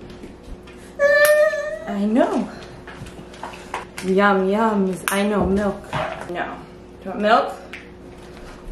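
A woman talks to a baby in a high, sing-song voice close by.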